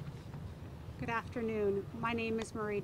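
A woman speaks calmly into microphones.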